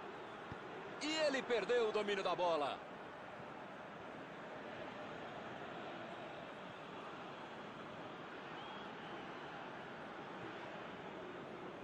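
A stadium crowd murmurs steadily in the background.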